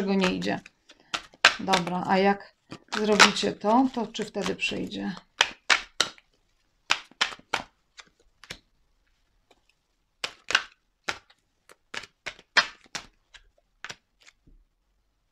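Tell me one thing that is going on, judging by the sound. Tarot cards are shuffled with soft, quick slaps.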